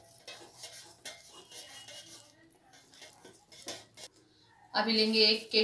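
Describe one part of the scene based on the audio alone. A spoon scrapes and stirs thick batter in a metal bowl.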